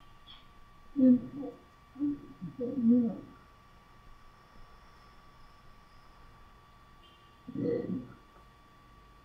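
A middle-aged woman speaks quietly and briefly, close by.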